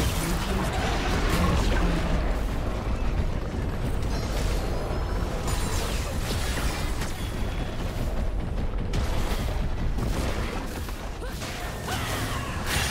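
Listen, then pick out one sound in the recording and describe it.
Fantasy spell effects crackle and whoosh during a battle.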